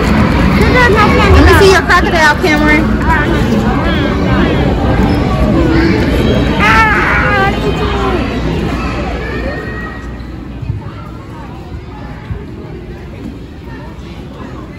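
Children and adults chatter loudly nearby.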